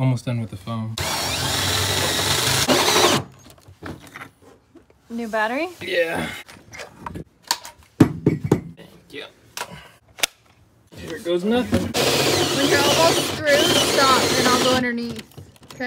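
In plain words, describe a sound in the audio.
A cordless drill with a hole saw whines as it cuts through plywood.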